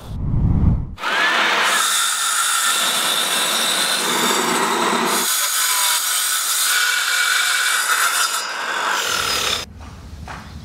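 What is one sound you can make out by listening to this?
A circular saw whines as it cuts through board.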